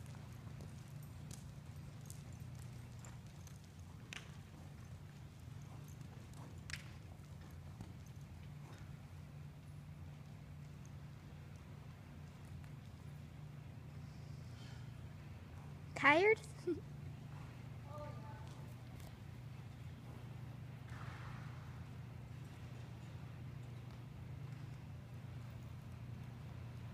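A horse's hooves thud softly on sand at a steady trot.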